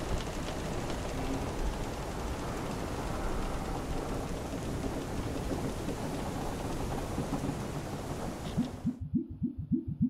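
Smoke hisses out in a steady rushing blast.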